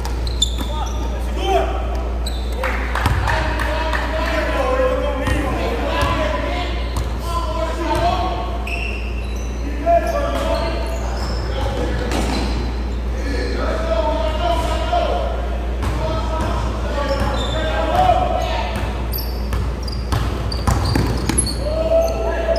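A basketball bounces on a hard floor in a large echoing hall.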